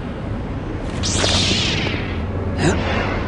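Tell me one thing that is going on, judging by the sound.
A lightsaber ignites with a rising whoosh.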